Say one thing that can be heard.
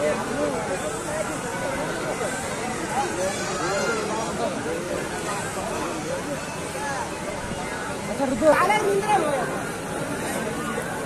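A large outdoor crowd of men and children chatters and calls out throughout.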